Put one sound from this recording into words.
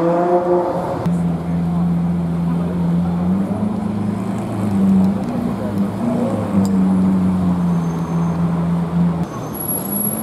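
A sports car engine idles with a deep, steady rumble.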